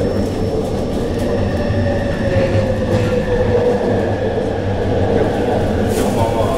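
Train wheels squeal on the rails as the train slows into a station.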